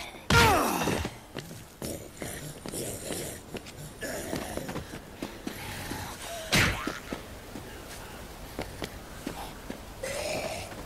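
Footsteps run quickly across hard ground and grass.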